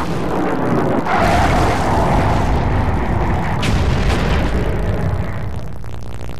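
A fire explosion roars loudly.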